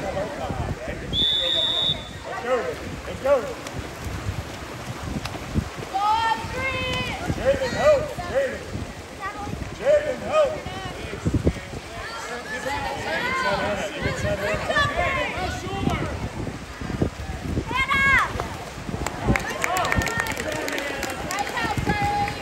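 Water splashes as swimmers kick and thrash.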